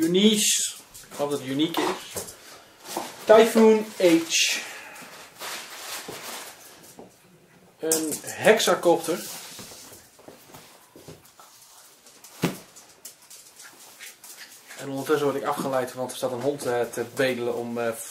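A man speaks calmly close by, in short bursts with pauses.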